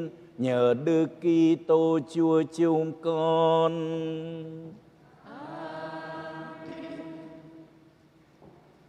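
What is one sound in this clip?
A man chants in a sung voice through a microphone, in an echoing hall.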